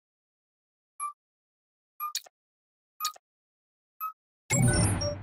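A countdown beeps once each second.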